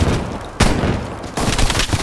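Fire crackles.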